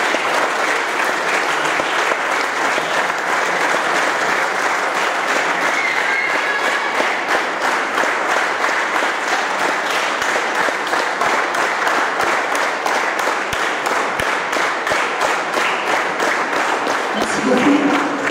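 An audience applauds and cheers loudly in a large hall.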